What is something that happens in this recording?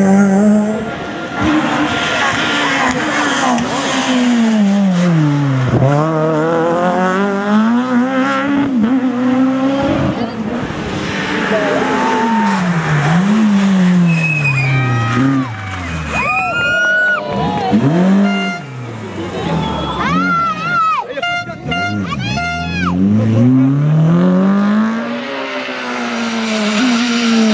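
Rally car engines roar and rev hard as the cars race past close by.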